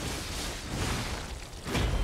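Flames roar and crackle in a burst.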